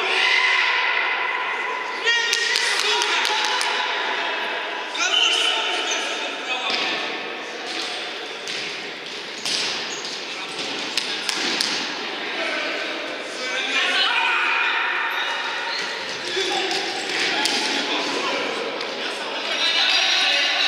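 Players' shoes squeak on a hard floor in a large echoing hall.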